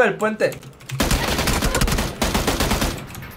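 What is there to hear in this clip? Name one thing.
Gunfire rattles in rapid bursts, close by.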